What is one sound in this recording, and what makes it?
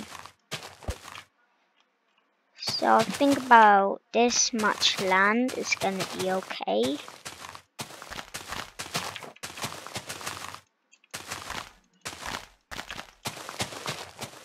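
A dirt block crumbles as it breaks.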